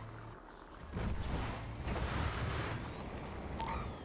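Car tyres skid and scrape over dirt.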